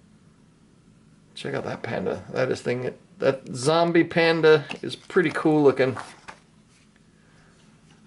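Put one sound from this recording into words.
Plastic sleeves rustle softly as hands handle them.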